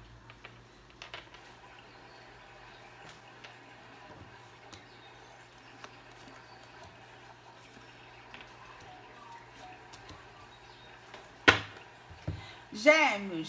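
Playing cards slap softly onto a table, one after another.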